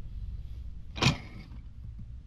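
A bicycle clanks onto a metal rail.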